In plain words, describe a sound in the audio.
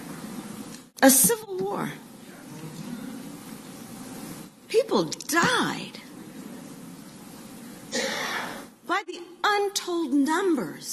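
A woman speaks through a microphone in a large echoing hall, with pauses between phrases.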